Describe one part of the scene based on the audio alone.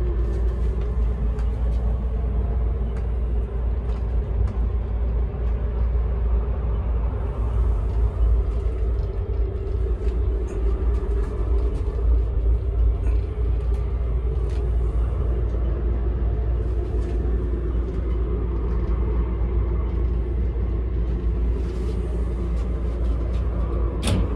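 A train rumbles steadily as it travels.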